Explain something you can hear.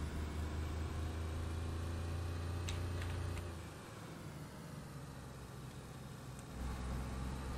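A car engine hums steadily, easing off as the car slows and then pulling again.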